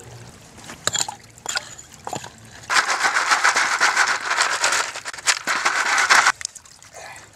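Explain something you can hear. Gravel and stones rattle in a pan.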